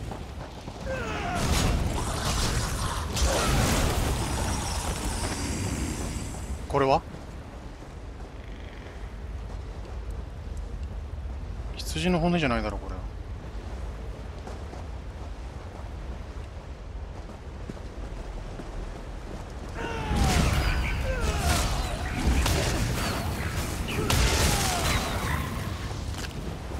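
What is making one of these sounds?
Blades slash and clash in quick bursts.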